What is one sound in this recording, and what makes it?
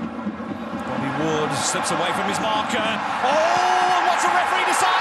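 A stadium crowd's roar swells loudly as the attack nears the goal.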